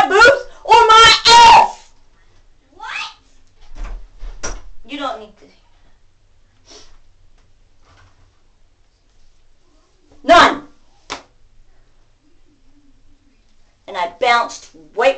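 A middle-aged woman shouts loudly and with animation, close by.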